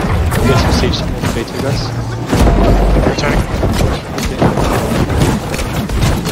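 Magic spells whoosh and burst.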